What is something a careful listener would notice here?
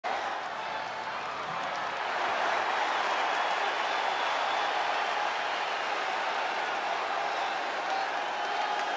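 A large crowd cheers and roars steadily in a vast echoing arena.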